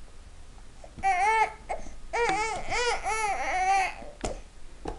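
A baby babbles and squeals up close in a high voice.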